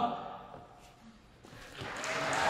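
A choir's last sung chord rings out and fades in a large echoing hall.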